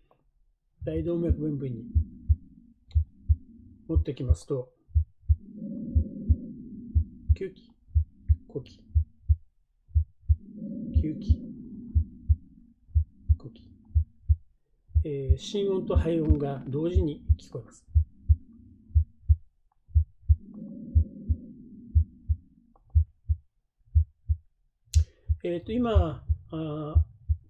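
A heartbeat thumps steadily through a speaker.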